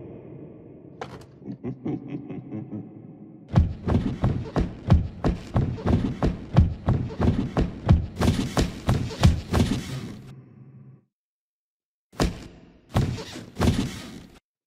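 Small footsteps patter across wooden planks.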